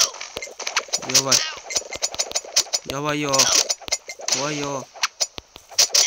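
Short rising musical tones chime as combos build.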